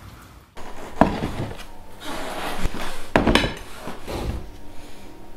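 A plate clatters down onto a wooden table.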